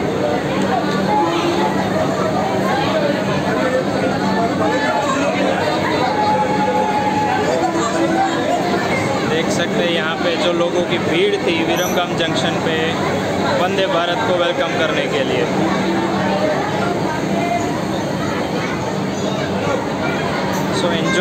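A large crowd chatters loudly all around, echoing under a roof.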